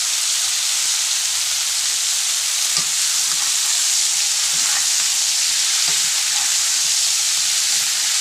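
Green beans sizzle steadily in a hot frying pan.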